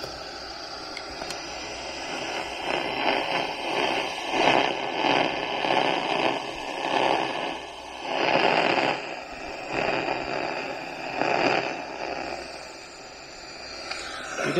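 An electronic leak detector crackles in rapid pulsing bursts.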